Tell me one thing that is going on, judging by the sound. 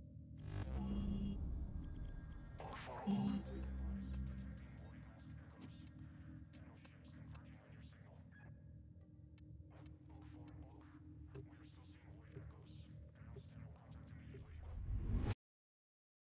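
Soft interface clicks and chimes sound as menu items are picked.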